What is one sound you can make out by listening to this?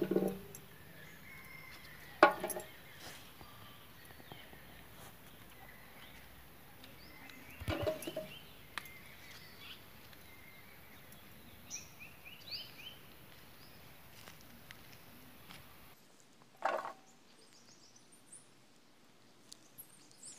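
A knife scrapes and peels a piece of fruit.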